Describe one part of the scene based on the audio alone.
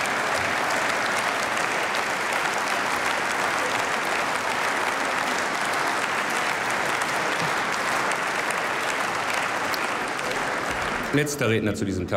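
A large crowd applauds steadily in a big hall.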